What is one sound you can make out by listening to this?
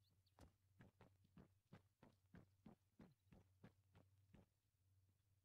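Footsteps tap quickly and evenly on hard paving.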